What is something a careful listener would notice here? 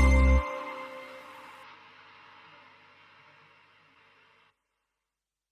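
An arcade machine plays electronic tones.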